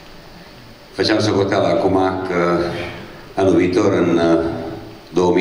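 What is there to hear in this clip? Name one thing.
An older man speaks calmly through a microphone.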